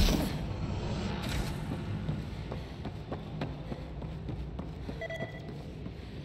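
Footsteps crunch on hard ground.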